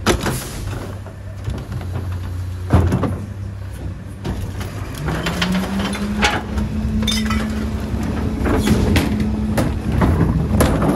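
A garbage truck engine idles with a low steady hum.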